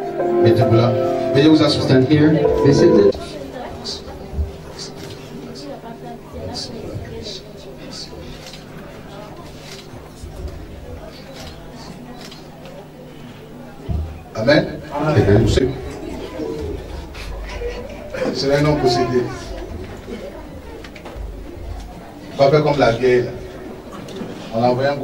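A man speaks fervently into a microphone, heard over loudspeakers.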